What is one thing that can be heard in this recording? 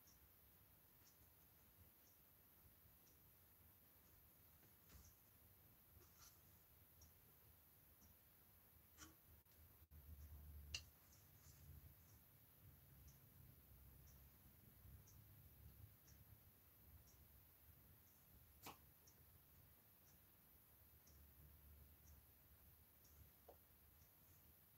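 A small paintbrush brushes softly and faintly.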